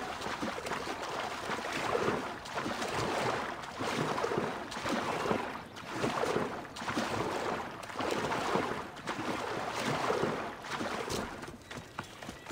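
Water splashes as a swimmer strokes through it in regular surges.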